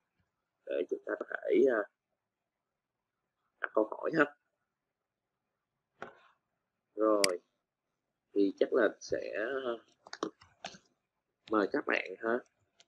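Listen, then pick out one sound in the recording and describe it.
A man speaks calmly in short phrases with pauses, close through an online call.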